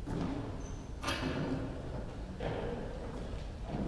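Footsteps walk across a hard floor in a large echoing room.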